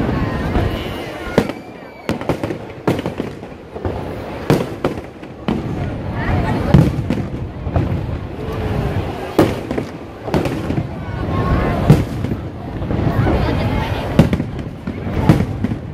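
Fireworks boom and crackle overhead.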